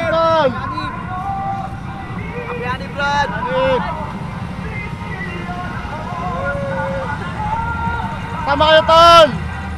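Motorcycle engines idle with a low rumble.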